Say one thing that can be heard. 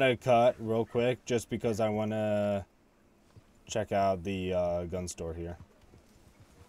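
A man talks animatedly, close to a microphone.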